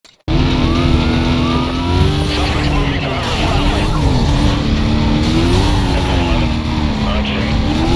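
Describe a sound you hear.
A car engine roars at high speed.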